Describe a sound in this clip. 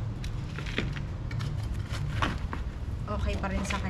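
A small trowel scrapes and digs into dry potting soil.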